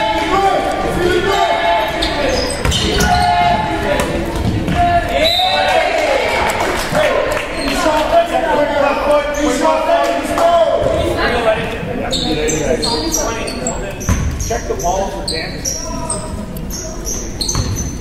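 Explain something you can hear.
Young people shout and call out across an echoing gym.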